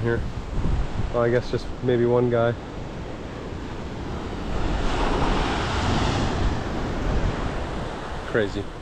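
Waves wash over rocks on the shore.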